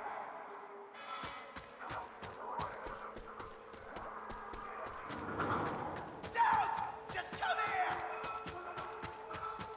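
Footsteps crunch quickly on gravel as a man runs.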